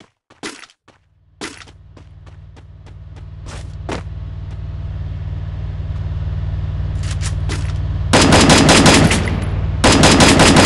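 A truck engine rumbles steadily and grows louder.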